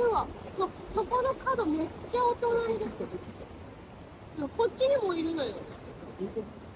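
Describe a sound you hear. A young woman talks with animation nearby, outdoors.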